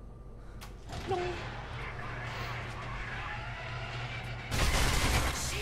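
A metal roller door rattles as it rolls up.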